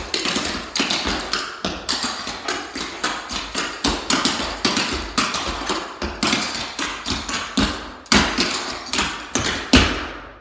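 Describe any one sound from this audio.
Clogging shoes tap rapidly and rhythmically on a wooden floor.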